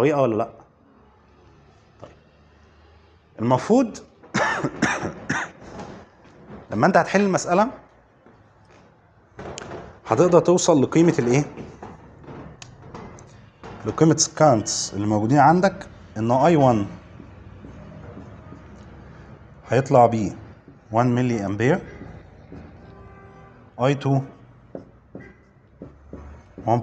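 A man lectures calmly in a room with a slight echo.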